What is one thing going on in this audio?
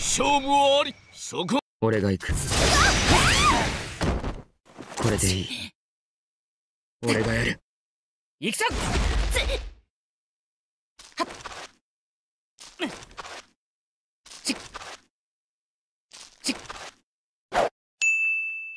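Sword slashes whoosh and clash in a fight.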